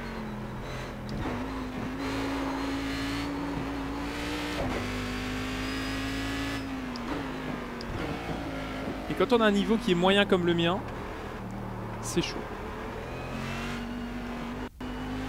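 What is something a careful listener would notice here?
A racing car engine drones loudly, its pitch rising and dropping as it shifts gears.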